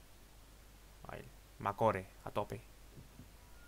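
A man speaks briefly with animation, close to a microphone.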